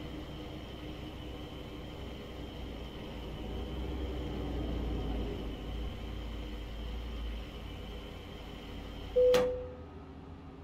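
A diesel truck engine idles, then cuts off.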